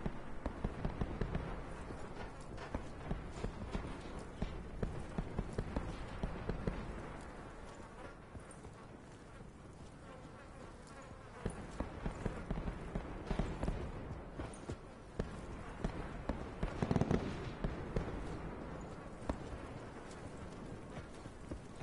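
Footsteps tap on hard ground.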